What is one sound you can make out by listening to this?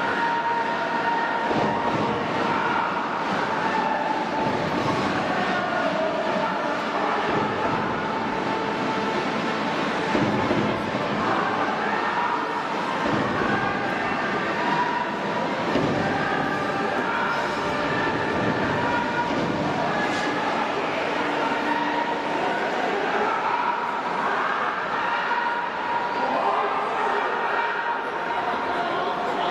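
A large stadium crowd cheers, chants and sings steadily throughout.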